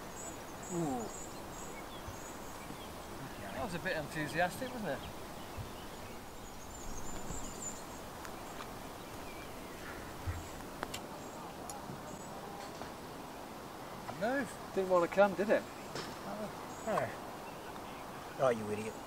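A man talks outdoors, a little way off.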